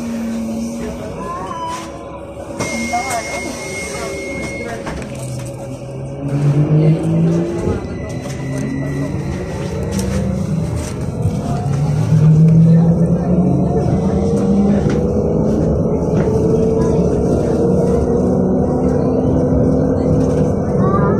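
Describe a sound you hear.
Tyres rumble steadily on the road under a moving bus.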